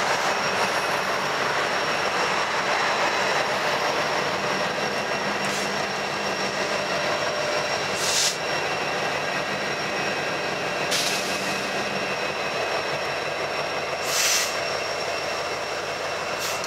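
A freight train rumbles and clatters steadily along the tracks nearby.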